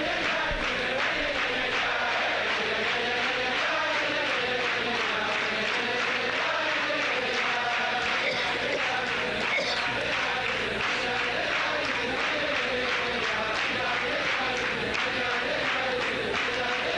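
A crowd of men sings a melody together loudly.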